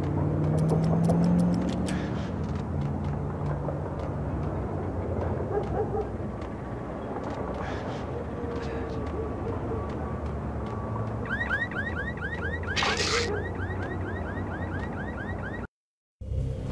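Footsteps tap on a hard tiled floor in a large echoing hall.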